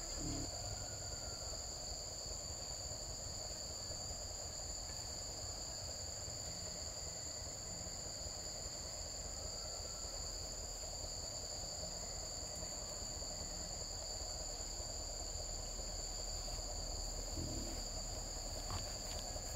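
Cloth rustles softly as a shirt is buttoned.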